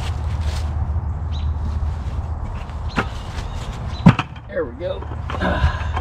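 A plastic bucket knocks and thuds.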